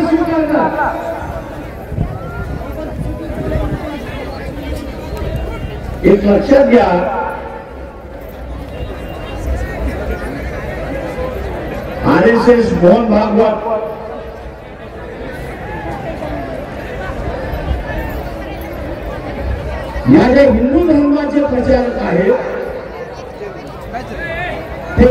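An elderly man speaks with emphasis through a loudspeaker, echoing outdoors.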